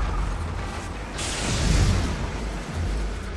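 Gunshots burst loudly.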